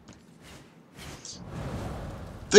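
Large wings flap with a rushing whoosh.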